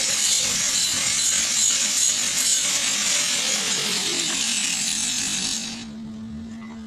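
A stick welding arc crackles and sizzles.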